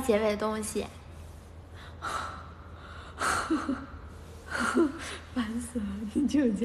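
A young woman talks brightly and playfully close to a phone microphone.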